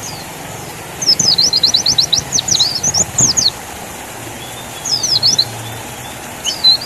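A small bird sings in quick, high chirping bursts close by.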